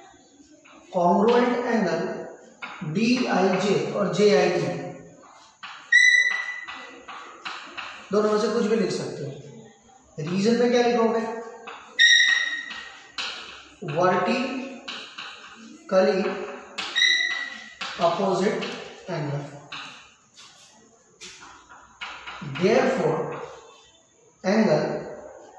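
A man explains something calmly and clearly, close by.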